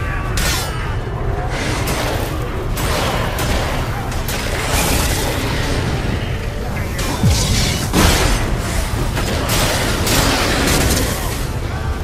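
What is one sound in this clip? Magic blasts whoosh and crackle in bursts.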